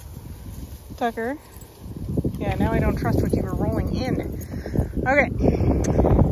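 Dogs whine and yip excitedly, close by.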